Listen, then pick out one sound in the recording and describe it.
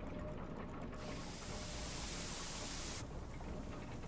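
Steam hisses.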